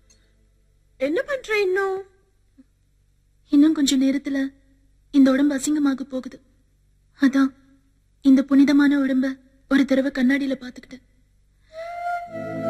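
A second young woman answers sharply, close by.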